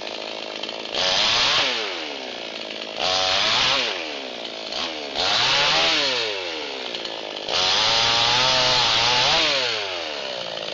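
A chainsaw revs loudly in several short bursts.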